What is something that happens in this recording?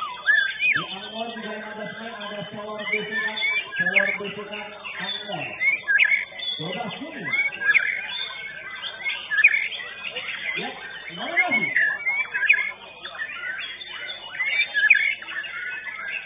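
A crowd of men chatters in the background.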